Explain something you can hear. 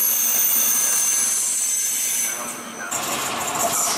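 A passenger train rolls past on the rails with a high whine.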